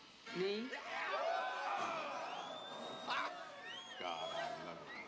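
Men howl and whoop loudly.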